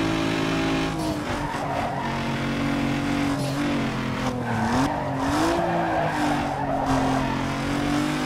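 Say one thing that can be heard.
Tyres screech as a car slides through a bend.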